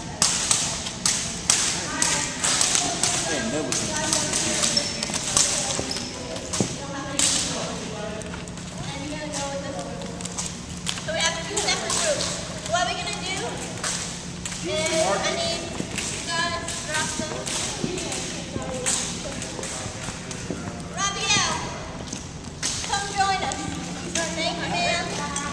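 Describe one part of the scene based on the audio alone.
Young women and men talk and call out nearby.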